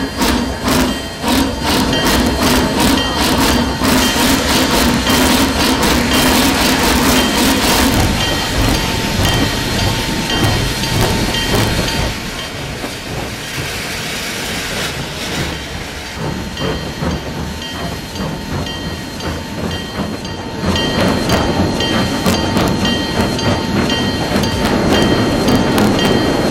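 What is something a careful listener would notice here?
Train wheels clatter and rumble on the rails.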